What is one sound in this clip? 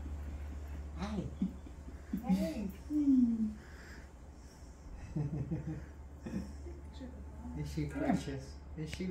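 A woman speaks softly and playfully to a baby nearby.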